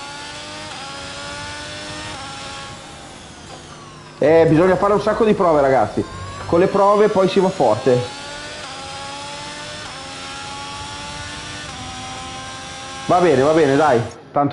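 A racing car engine whines, rising in pitch and dropping with each gear change.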